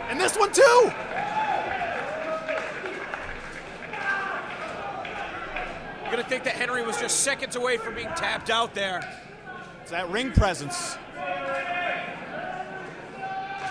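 A crowd of spectators cheers and shouts loudly in a large echoing hall.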